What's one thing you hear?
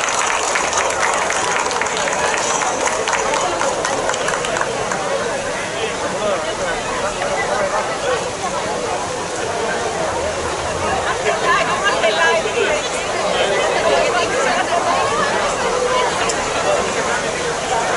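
A choir of children and adults sings outdoors through loudspeakers.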